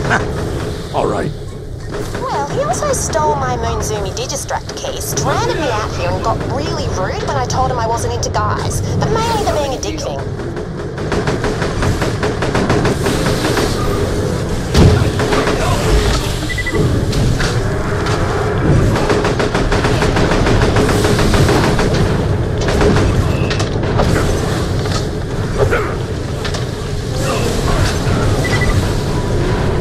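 Rapid gunfire blasts over and over.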